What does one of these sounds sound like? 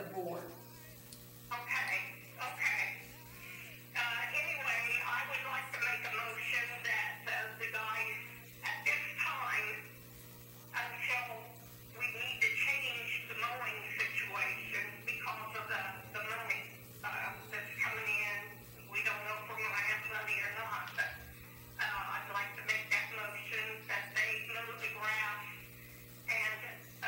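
An adult speaks steadily, heard from a distance in a room.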